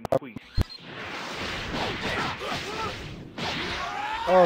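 Energy blasts roar and crackle during a fight.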